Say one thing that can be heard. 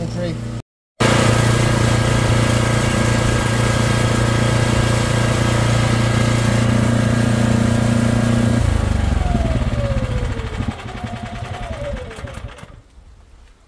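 A jetting machine engine runs with a steady loud drone, then winds down and stops.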